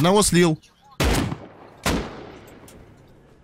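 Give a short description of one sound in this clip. Gunshots ring out loudly, with an echo trailing after each shot.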